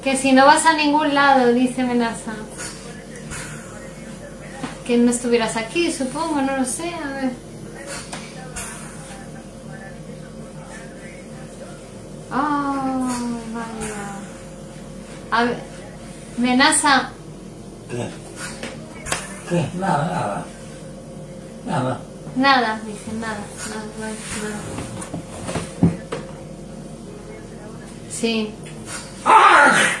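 A young woman talks on a phone close by, in bursts and with animation.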